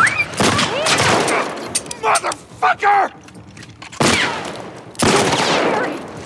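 Gunshots crack loudly nearby.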